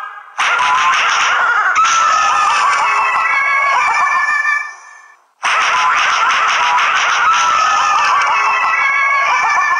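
A cartoon pumpkin bursts with a crunch.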